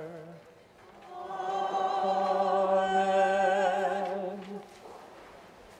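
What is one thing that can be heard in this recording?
A man chants in a sung voice through a microphone in a large echoing hall.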